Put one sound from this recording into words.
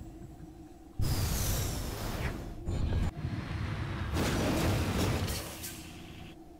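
A vehicle's thrusters roar as it descends.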